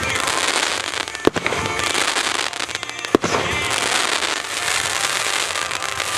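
Fireworks crackle and pop rapidly outdoors.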